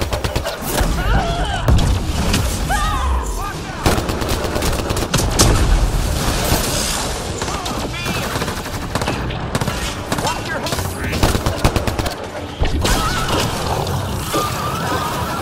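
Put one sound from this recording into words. Electric energy blasts crackle and zap.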